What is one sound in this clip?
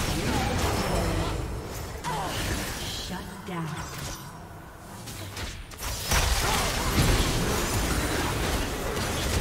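Magic blasts and weapon strikes crackle and whoosh in a busy battle.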